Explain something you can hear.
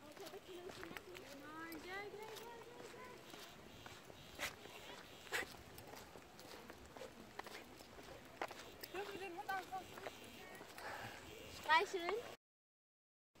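Young women talk and call out with animation from a short distance.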